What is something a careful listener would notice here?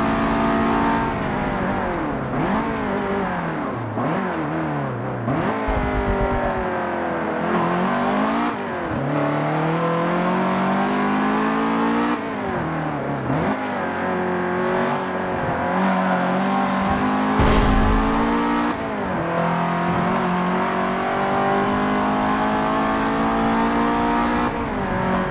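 A car engine revs hard, rising and falling in pitch as gears shift.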